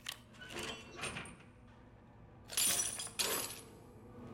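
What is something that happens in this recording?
Bolt cutters snap through a metal chain.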